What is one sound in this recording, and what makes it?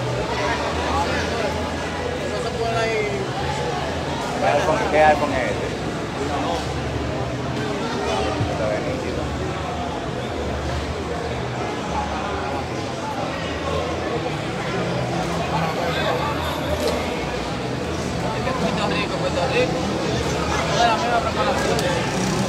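A crowd of men chatter and call out in a large covered hall.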